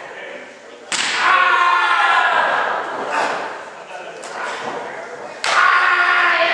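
A wrestler slams onto a ring mat.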